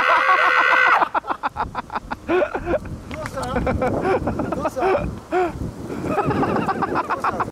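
A young man laughs and talks breathlessly.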